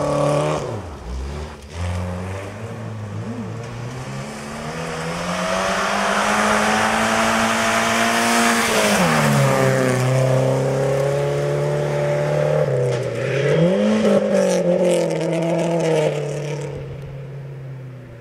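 A rally car engine roars loudly, revving as it approaches and passes close by before fading.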